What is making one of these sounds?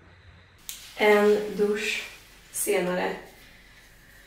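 A young woman speaks briefly and cheerfully, close by.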